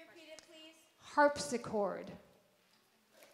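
A young girl speaks out loudly and with animation.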